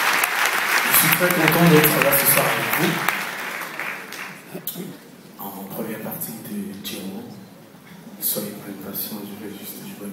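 Two acoustic guitars play together in a large hall.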